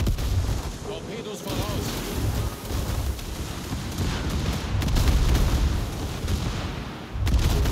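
A battleship's secondary guns fire in rapid booming bursts.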